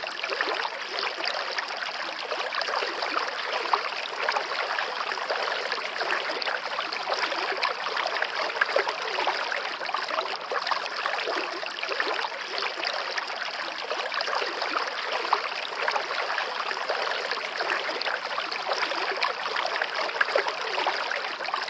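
A stream babbles and splashes steadily over rocks nearby.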